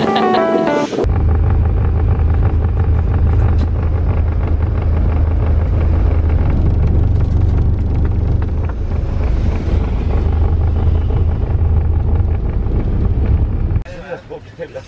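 A vehicle engine hums steadily with a low rumble.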